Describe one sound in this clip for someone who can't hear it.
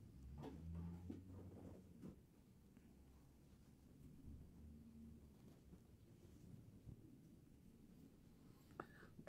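Fabric rustles softly as hands handle a soft toy.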